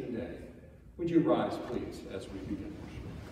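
An elderly man speaks briefly in a large echoing hall.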